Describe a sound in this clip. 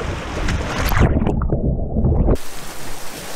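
Water churns with a muffled, underwater rumble.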